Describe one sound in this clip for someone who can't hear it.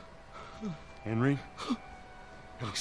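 A man calls out sharply.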